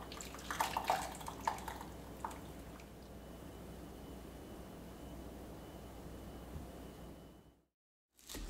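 Liquid drips through a strainer into a jug.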